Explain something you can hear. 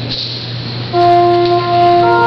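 A pipe organ sounds a sustained chord.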